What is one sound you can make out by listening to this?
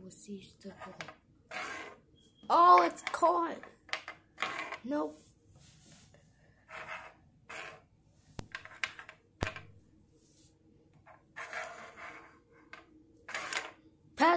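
Small plastic helmets knock and clatter on a wooden table.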